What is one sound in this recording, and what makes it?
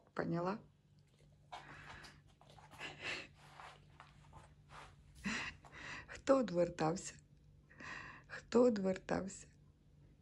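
A dog whines in short high cries.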